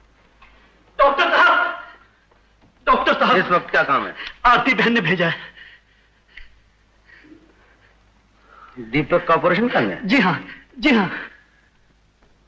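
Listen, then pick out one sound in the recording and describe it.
A man speaks with animation and laughs, close by.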